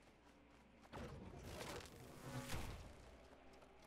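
A magic spell whooshes and hums.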